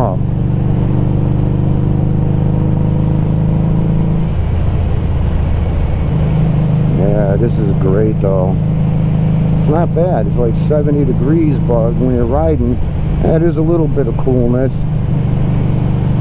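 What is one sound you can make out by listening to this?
A motorcycle engine rumbles steadily and changes gear.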